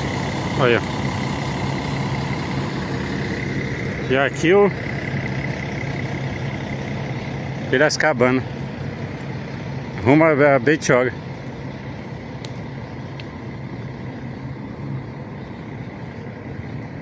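A bus engine idles with a steady low rumble nearby.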